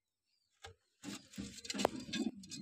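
Hands rustle and knock against wood close by.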